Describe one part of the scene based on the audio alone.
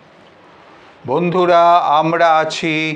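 An elderly man speaks loudly and clearly, close by.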